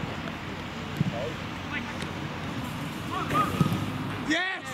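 A football is kicked hard with a thud.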